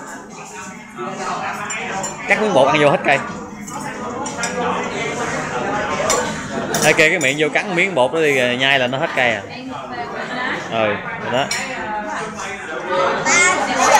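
Cutlery clinks and scrapes on plates.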